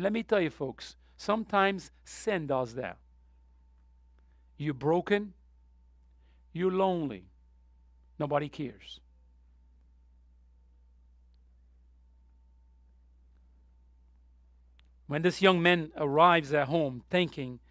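A man preaches through a microphone, speaking with measured pauses.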